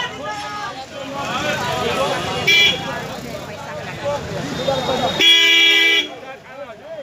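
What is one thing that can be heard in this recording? A crowd of men talks and argues loudly outdoors.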